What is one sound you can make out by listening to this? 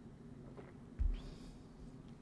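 A mug is set down with a dull thump.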